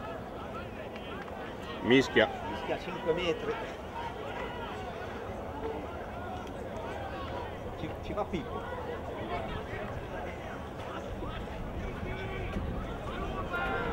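A crowd of young players chatters and shouts outdoors.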